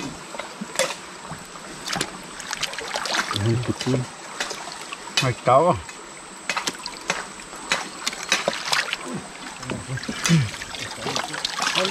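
Water splashes and sloshes around hands.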